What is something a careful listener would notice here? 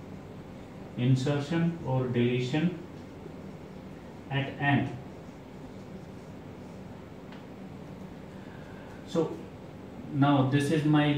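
A young man speaks calmly and clearly, close by.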